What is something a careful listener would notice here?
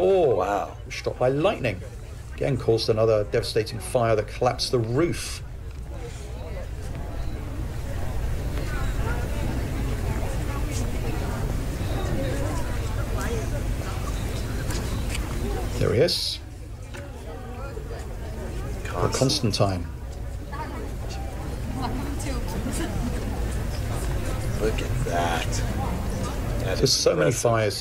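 A crowd murmurs outdoors in a large open square.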